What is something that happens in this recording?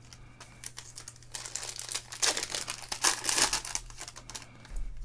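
Foil wrapping crinkles and tears as a pack is opened.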